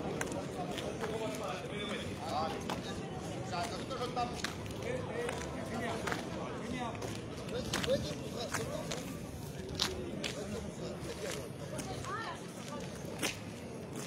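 A crowd of men shouts and chatters outdoors.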